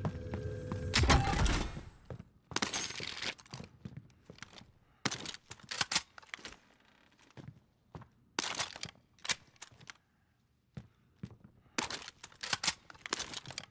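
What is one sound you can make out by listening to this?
A gun clatters as it is picked up.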